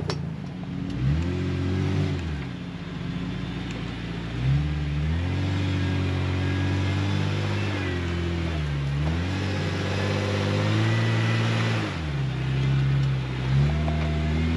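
Tyres crunch over snow and rocks.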